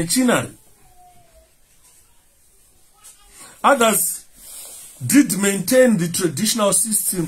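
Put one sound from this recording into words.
A man speaks calmly and close by, with pauses.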